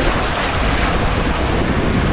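Water rushes through a slide tube.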